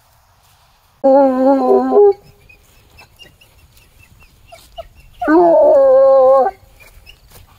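A hound bays loudly close by in long, drawn-out howls.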